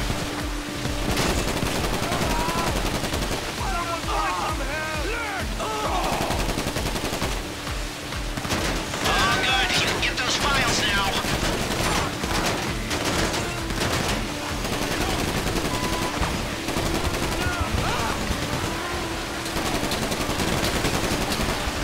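A water cannon sprays with a steady hiss.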